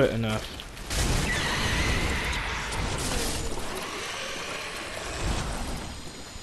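Flames roar and whoosh in a burst of fire.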